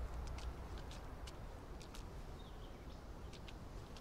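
Footsteps tread slowly on hard ground.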